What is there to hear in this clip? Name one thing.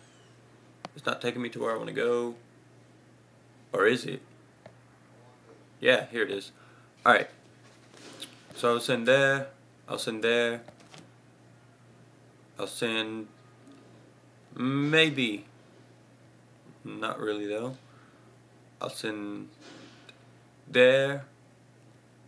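A young man speaks calmly and close by, in short bursts with pauses.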